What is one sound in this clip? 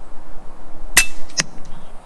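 An air rifle fires with a sharp crack.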